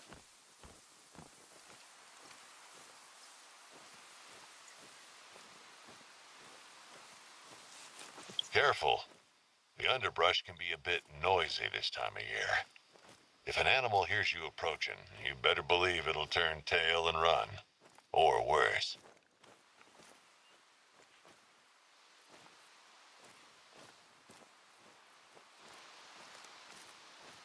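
Footsteps rustle through ferns and undergrowth.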